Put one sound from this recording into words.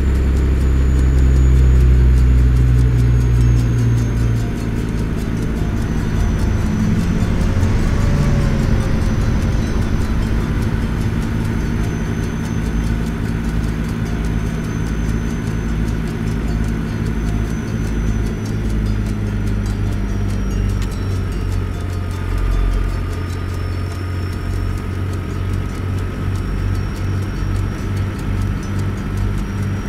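A truck engine rumbles steadily while driving.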